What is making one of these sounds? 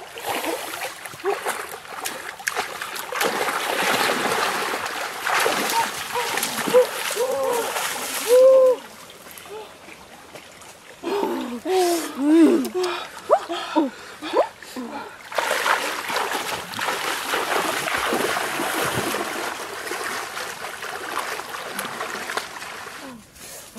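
Water splashes as people wade through a shallow stream.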